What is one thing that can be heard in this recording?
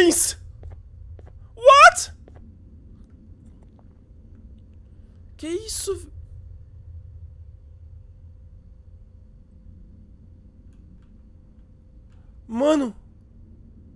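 A creature gives short, high, gliding screeches.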